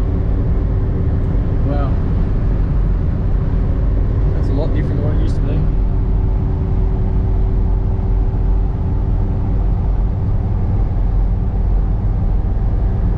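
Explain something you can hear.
A vehicle engine drones steadily with road rumble, heard from inside the cab.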